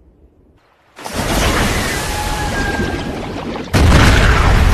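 A vehicle crashes into water with a loud splash.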